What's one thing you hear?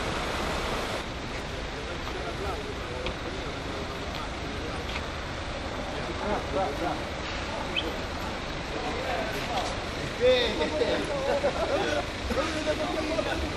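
Floodwater flows and ripples across a street.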